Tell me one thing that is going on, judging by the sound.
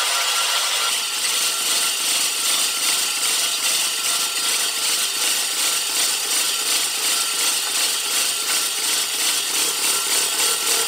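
Mower reel blades whir and click rapidly as they spin.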